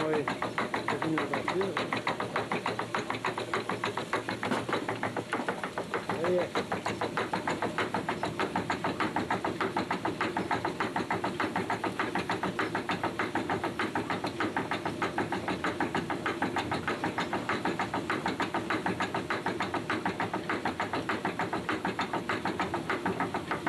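Millstone machinery in a water mill clatters in a rapid, even rhythm.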